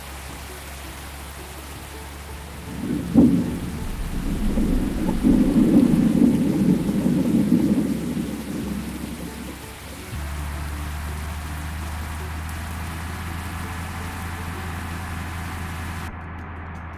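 A heavy truck's engine rumbles as it drives.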